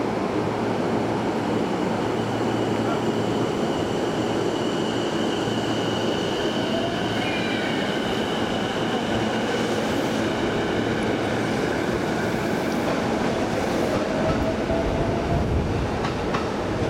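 A train rumbles into the station and brakes with a squeal.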